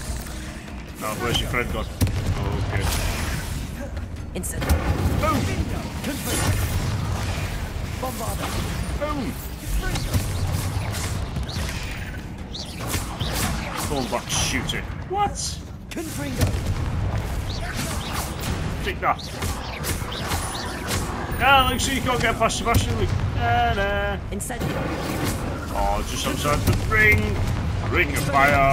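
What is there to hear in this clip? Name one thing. Heavy impacts thud and crash.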